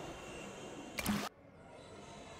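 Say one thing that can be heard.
A short whoosh sounds as a game's scene changes.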